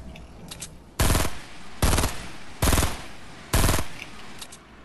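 Loud gunshots ring out one after another.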